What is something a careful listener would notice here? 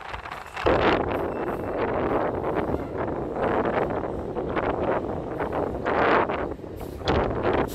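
Traffic rumbles along a busy road below, heard from high above.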